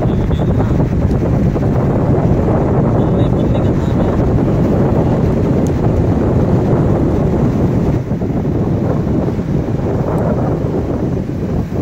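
Water rumbles and swirls in a steady low underwater roar.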